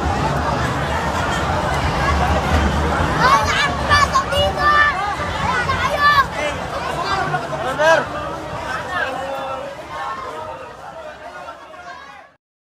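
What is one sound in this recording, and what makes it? A crowd of young people chatters and shouts close by, in an echoing room.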